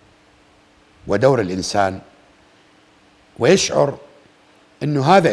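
A middle-aged man speaks forcefully into a microphone, in short emphatic bursts.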